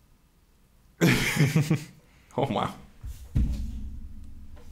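Young men laugh loudly, close to microphones.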